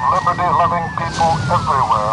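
Shells explode in the sea, throwing up splashing water.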